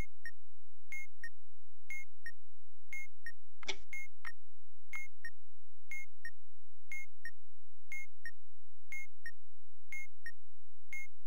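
A clock ticks steadily in an even beat.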